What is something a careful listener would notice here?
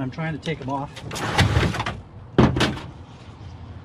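Metal computer parts clatter and scrape as they are handled.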